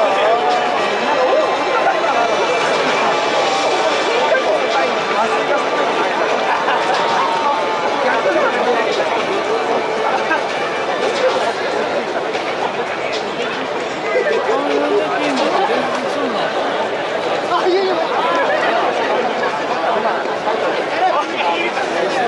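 A large crowd chatters and murmurs outdoors.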